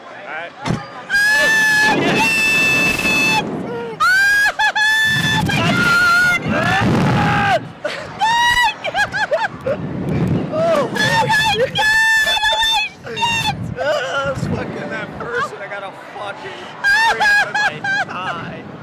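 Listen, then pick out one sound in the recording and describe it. A young man shouts and whoops up close.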